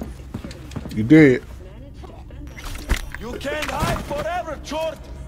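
A man cries out and groans while struggling.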